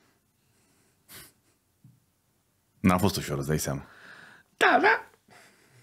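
An older man laughs.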